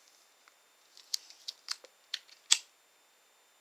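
A lighter clicks several times close by.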